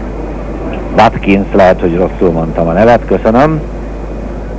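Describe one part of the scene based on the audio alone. A man speaks calmly over a headset microphone.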